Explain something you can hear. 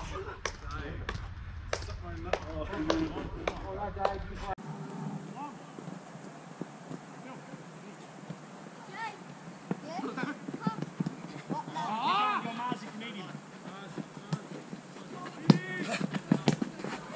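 Hockey sticks clack sharply against a ball.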